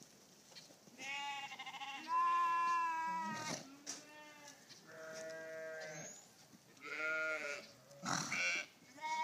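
Goats bleat loudly nearby, over and over.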